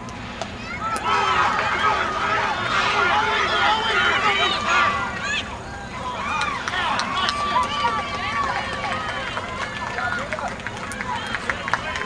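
A crowd of adults and children cheers and shouts outdoors.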